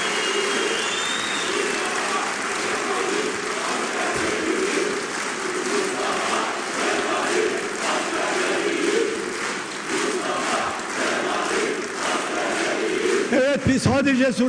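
A large crowd claps and cheers in a big echoing hall.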